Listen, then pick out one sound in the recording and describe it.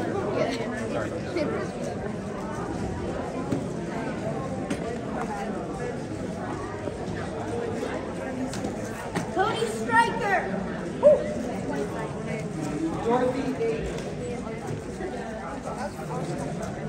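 A crowd of children and adults chatter throughout a large echoing hall.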